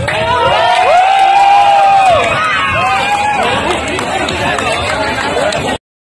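A crowd cheers and whistles loudly outdoors.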